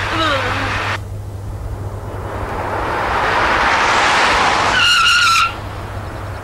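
A car drives past on a road.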